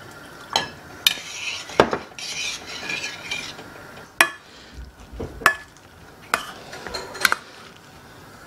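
Metal utensils clink against metal saucepans.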